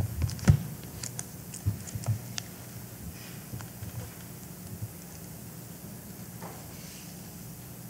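A young woman reads out quietly into a microphone.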